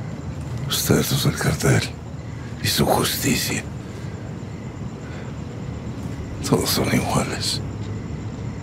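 An elderly man speaks calmly and mockingly, close by.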